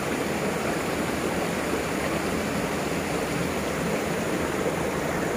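A thin stream of water splashes steadily onto stones.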